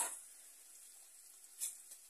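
A spoon scrapes and stirs inside a metal pot.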